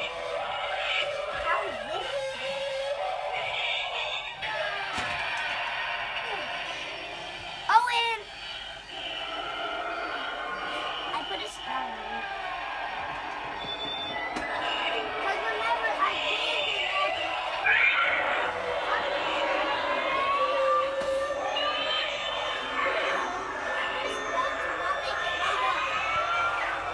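A busy crowd murmurs in the background.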